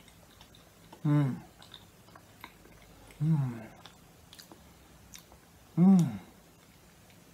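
A middle-aged man hums with pleasure close by.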